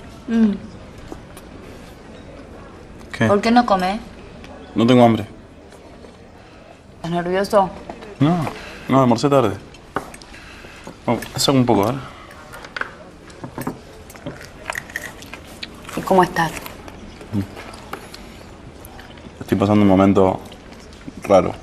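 A young man talks quietly and calmly nearby.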